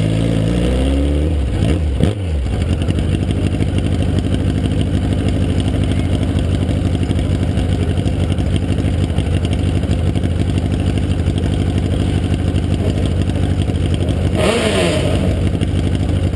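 A race car engine revs up sharply and drops back.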